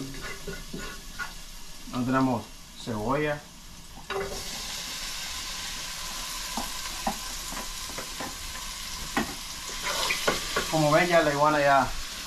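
A wooden spoon scrapes and knocks against a pot.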